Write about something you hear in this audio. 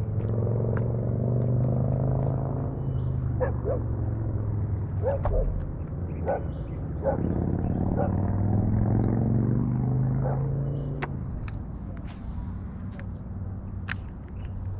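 Wind blows across open water.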